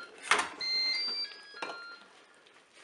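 An electric cooker beeps several times.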